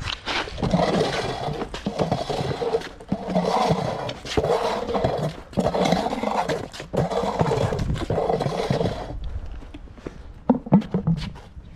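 Plastic traffic cones thud down onto stone paving.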